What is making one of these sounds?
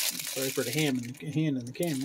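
A raccoon crunches on a cracker.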